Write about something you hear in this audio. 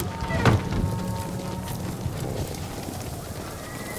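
Footsteps run across grass outdoors.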